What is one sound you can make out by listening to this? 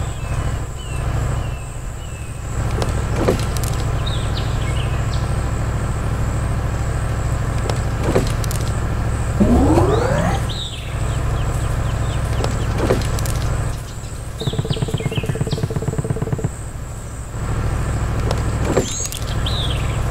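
A small machine's engine rumbles steadily.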